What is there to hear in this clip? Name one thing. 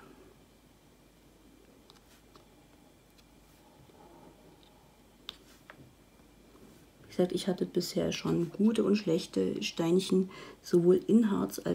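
A plastic pen taps softly as it presses tiny beads into place.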